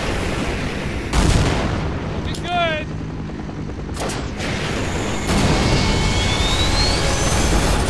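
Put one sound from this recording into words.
Aircraft rotors drone steadily overhead.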